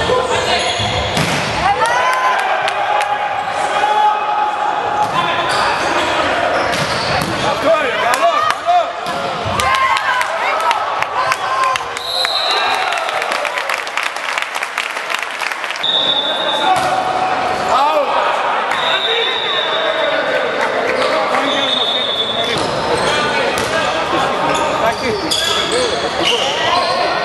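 A volleyball is struck hard, with sharp slaps echoing through a large hall.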